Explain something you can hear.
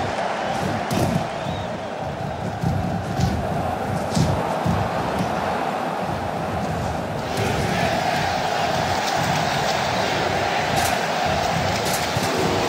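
Body blows land with sharp thuds.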